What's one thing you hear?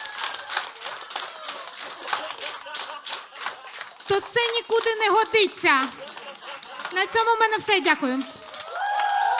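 A young woman speaks with animation into a microphone, heard through loudspeakers.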